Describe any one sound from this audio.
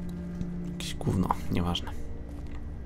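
A young man speaks briefly into a nearby microphone.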